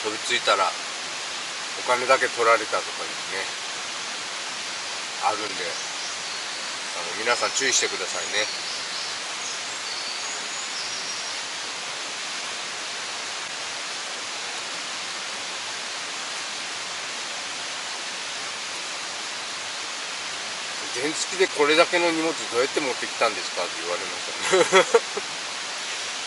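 A middle-aged man talks calmly nearby, in short bursts.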